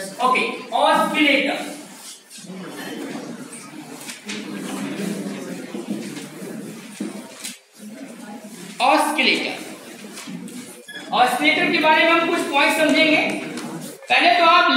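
A man speaks loudly and clearly in a room.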